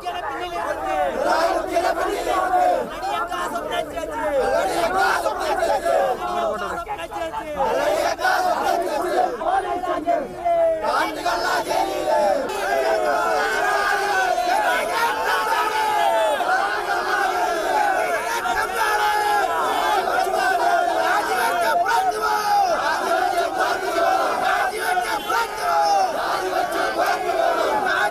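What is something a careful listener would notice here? A crowd of men chants and shouts loudly outdoors.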